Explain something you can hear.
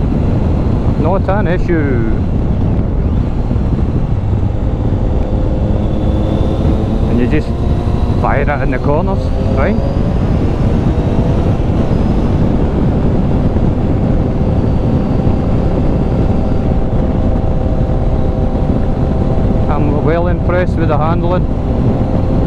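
A motorcycle engine revs up through several gear changes.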